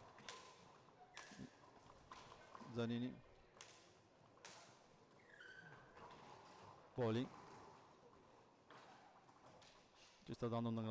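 Roller skates rumble and scrape across a hard floor.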